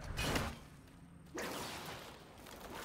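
An axe whooshes and strikes with a heavy hit.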